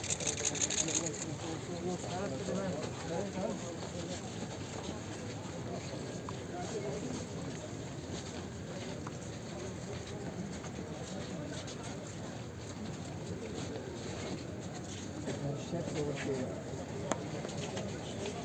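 A crowd of men murmurs and talks outdoors nearby.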